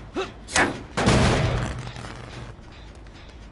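A machine bursts with a loud bang and a rumbling blast.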